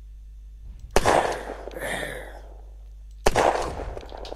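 A gun fires two loud shots, each followed by a short rumbling echo.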